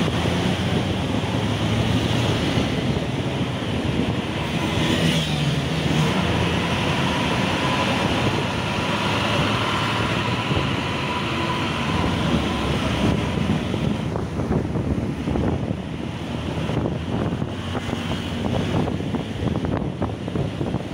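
Traffic hums steadily along a city street.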